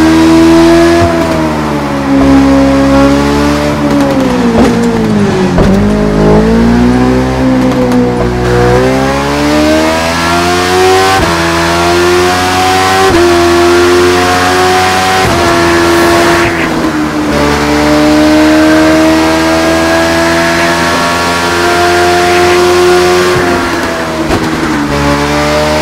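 A motorcycle engine roars loudly, revving up and down through the gears.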